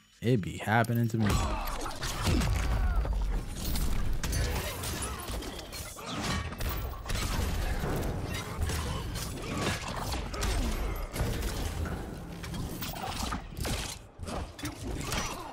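Punches, kicks and blasts thud and crash in quick bursts.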